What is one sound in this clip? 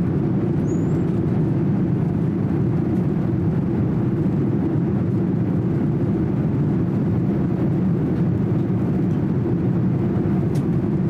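A jet airliner's engines roar with a steady, deep rumble inside the cabin.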